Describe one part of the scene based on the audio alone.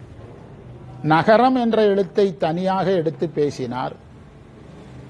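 A man sings or speaks with feeling into a microphone.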